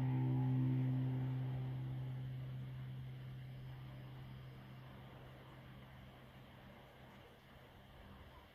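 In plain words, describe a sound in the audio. A metal singing bowl rings with a deep, steady hum that slowly fades away.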